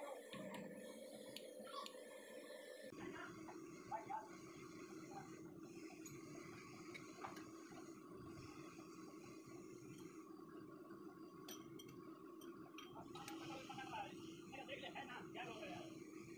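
Metal tools clink and knock against the lathe.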